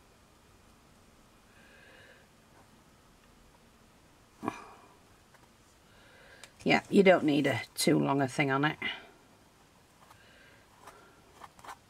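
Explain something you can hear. A ribbon rustles as it is pulled through a hole in cardboard.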